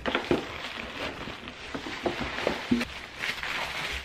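Paper crinkles and rustles as it is handled.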